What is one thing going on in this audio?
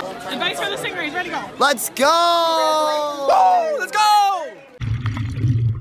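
A teenage boy shouts excitedly close by.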